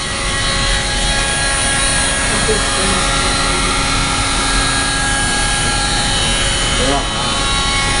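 A power drill whirs steadily close by.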